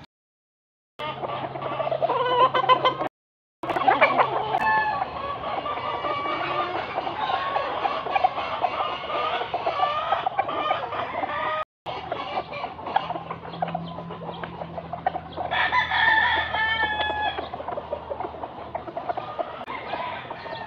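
A rooster crows loudly outdoors.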